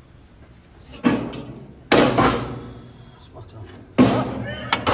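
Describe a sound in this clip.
Metal clanks sharply against a steel trough.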